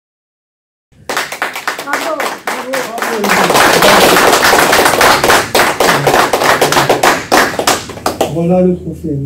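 A man claps his hands.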